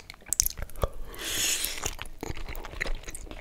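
A man slurps spaghetti close to a microphone.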